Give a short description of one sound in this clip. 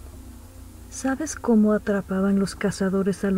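A young woman sings out loudly with long held notes.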